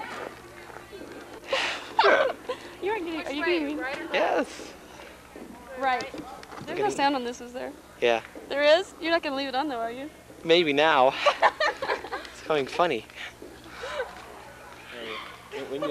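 A young woman talks and laughs cheerfully close by.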